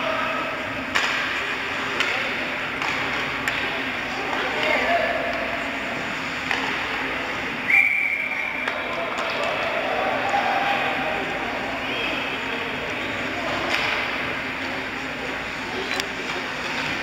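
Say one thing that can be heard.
Hockey sticks clack sharply against the puck and the ice.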